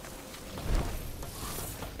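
Heavy boots clank up metal stairs.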